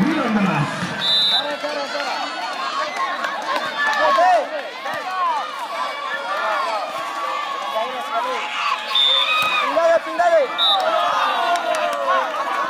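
A large outdoor crowd cheers and shouts excitedly.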